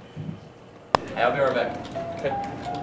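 Fingers type on a computer keyboard.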